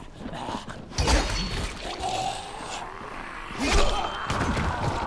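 A heavy weapon strikes a body with wet, thudding blows.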